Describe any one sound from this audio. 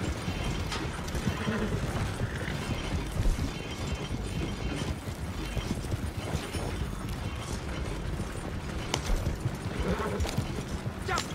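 Horse hooves clop steadily on soft ground.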